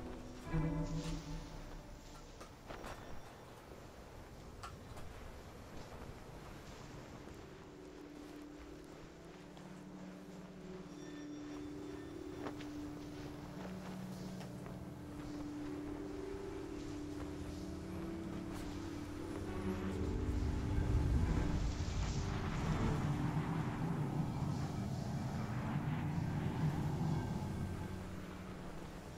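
Wind blows steadily over open snow, growing stronger toward the end.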